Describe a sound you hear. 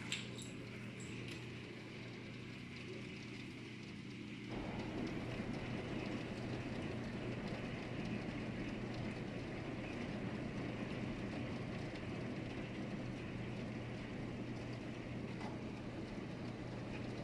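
Heavy rain pours down steadily outdoors, growing louder after a few seconds.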